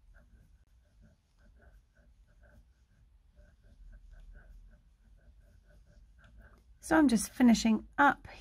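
Yarn rustles softly as a crochet hook pulls loops through it.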